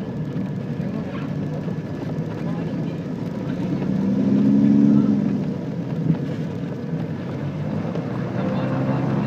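An aircraft engine drones steadily from inside the cabin.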